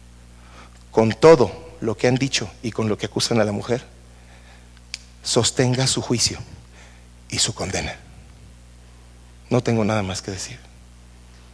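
A man speaks with animation into a microphone, pausing between phrases.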